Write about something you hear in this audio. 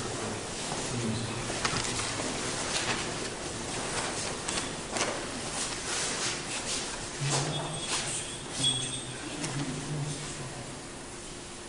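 A man chants in a deep voice in an echoing hall.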